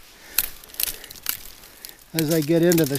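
Footsteps crunch on dry leaves close by.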